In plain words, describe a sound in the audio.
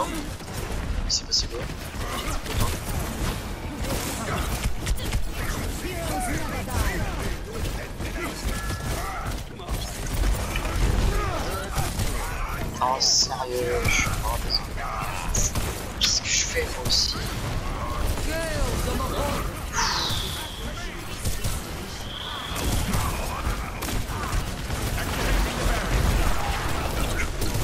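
Weapons fire in rapid bursts with sharp electronic zaps.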